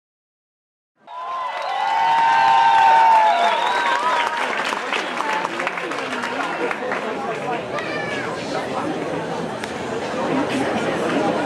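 A large crowd cheers, whistles and chatters in a big echoing hall.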